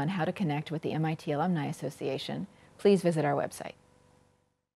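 A woman speaks calmly and warmly, close to a microphone.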